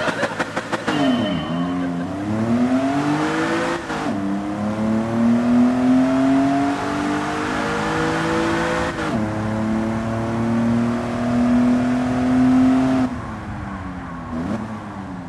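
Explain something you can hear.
A race car engine accelerates hard, its pitch climbing and dropping at each gear change.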